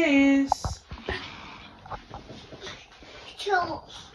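A young woman talks to a child nearby.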